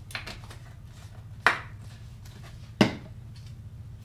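A plastic bottle is set down on a wooden floor with a knock.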